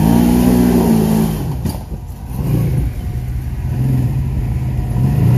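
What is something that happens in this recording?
An off-road vehicle's engine revs and rumbles up close.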